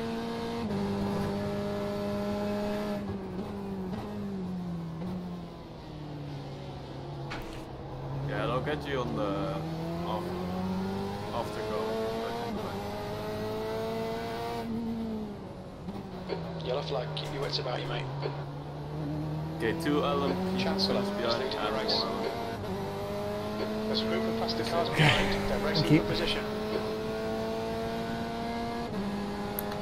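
A race car engine drones steadily, dropping in pitch and rising again as the car brakes and speeds up.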